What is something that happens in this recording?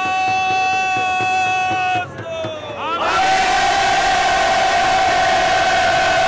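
A crowd of young men chants slogans loudly outdoors.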